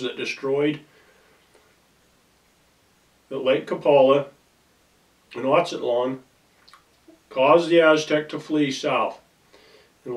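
A middle-aged man speaks calmly in short phrases, close by.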